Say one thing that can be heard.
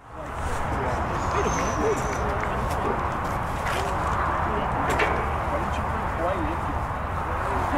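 Wind rumbles steadily across an open outdoor space.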